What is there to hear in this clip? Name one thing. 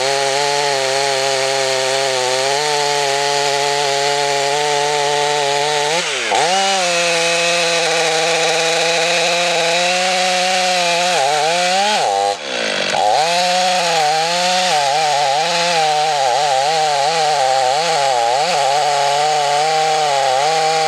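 A chainsaw roars loudly and close, its engine dipping and surging as it cuts into wood.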